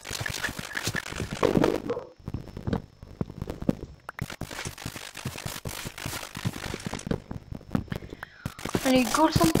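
An axe chops wood with quick, repeated dull knocks.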